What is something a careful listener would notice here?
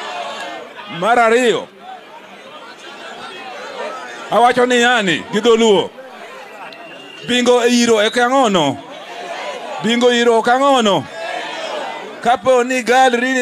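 A man shouts loudly through a microphone in bursts.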